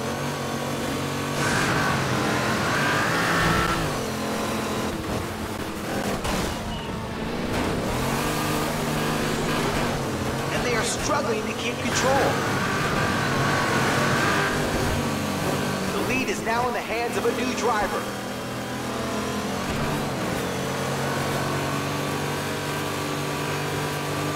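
Tyres skid and slide on snow.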